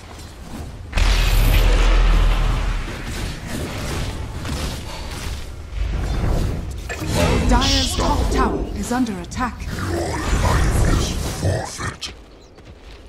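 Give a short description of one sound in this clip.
Video game spells and weapon hits clash in a fight.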